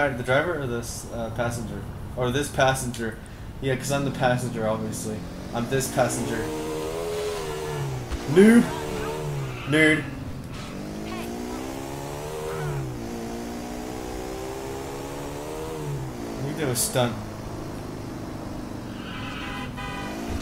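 A motorcycle engine revs, rising and falling in pitch.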